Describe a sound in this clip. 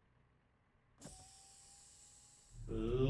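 A truck engine idles softly.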